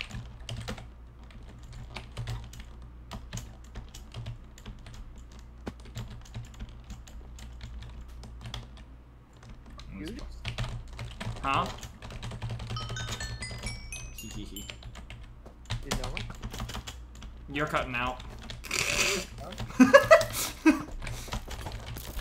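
Footsteps patter quickly over ground.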